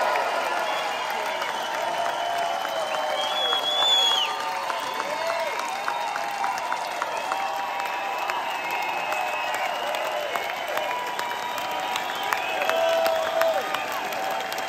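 Members of a crowd whistle shrilly.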